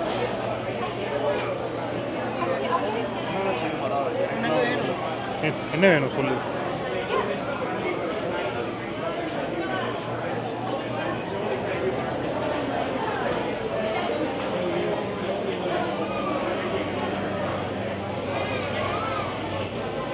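A crowd of people chatters all around in a large, echoing hall.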